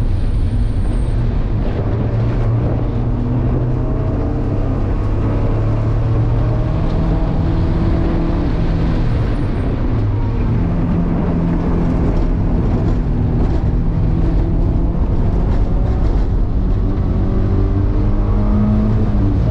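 A car engine roars loudly from inside the cabin, its pitch rising and falling with gear changes.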